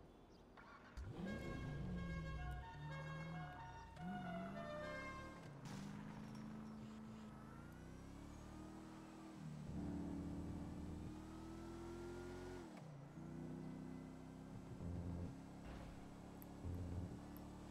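A car engine revs and hums, rising and falling in pitch as the car drives.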